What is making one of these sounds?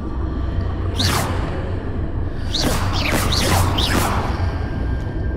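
A magical spell whooshes and crackles.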